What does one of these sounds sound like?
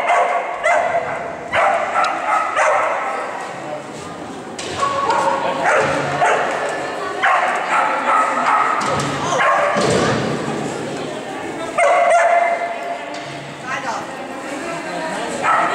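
A man calls out commands to a dog in a large echoing hall.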